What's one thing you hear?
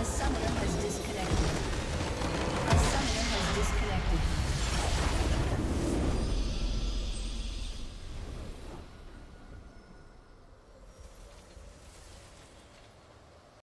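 A huge magical explosion booms and rumbles, then slowly fades away.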